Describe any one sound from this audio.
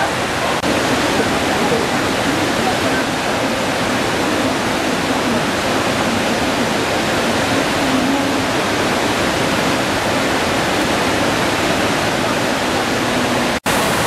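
A group of adults chat at a distance.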